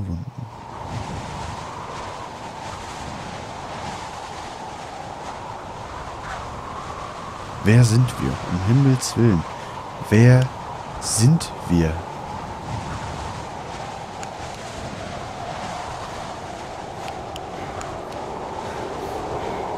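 Wind blows steadily in a snowstorm.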